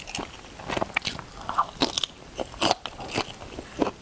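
A young woman bites into a firm, juicy shrimp with a soft crunch.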